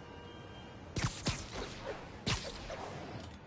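A web shoots out with a sharp snap.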